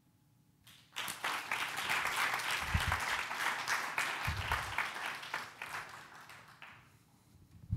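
An audience applauds in a hall.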